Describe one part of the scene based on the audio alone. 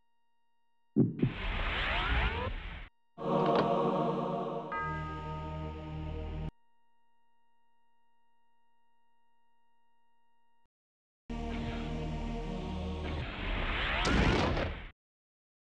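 A deep magical whoosh swells and fades.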